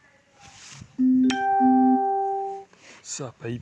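An electronic game plays a short chiming jingle.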